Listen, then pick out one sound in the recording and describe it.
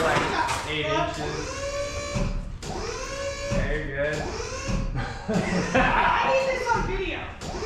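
Several men talk loudly nearby in a hard-walled room.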